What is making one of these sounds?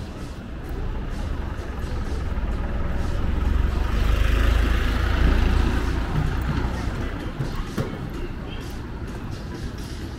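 A truck engine rumbles close by as it drives past and moves away.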